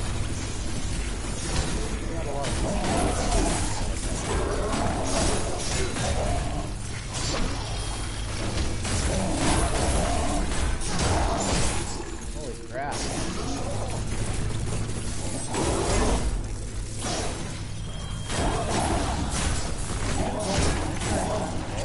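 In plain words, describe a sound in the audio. Heavy metallic blows clash in a fight.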